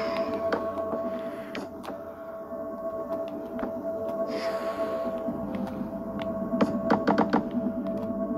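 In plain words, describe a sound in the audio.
Wooden blocks are set down with soft knocks.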